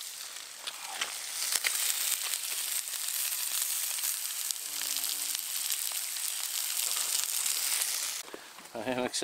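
Fish sizzles loudly in a hot frying pan.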